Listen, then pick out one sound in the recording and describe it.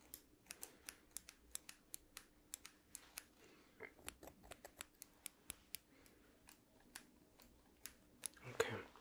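Scissors snip rapidly close to a microphone.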